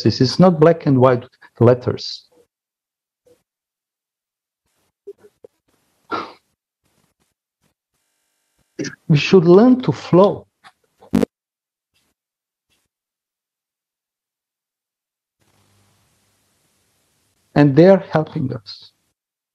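A middle-aged man talks calmly over an online call, in short bursts with pauses.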